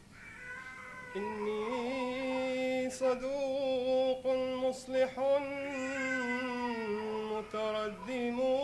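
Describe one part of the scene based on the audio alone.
A young man recites in a long, melodic chant through a microphone.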